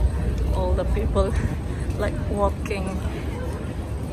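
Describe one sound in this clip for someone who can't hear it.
Young women chat nearby in lively voices.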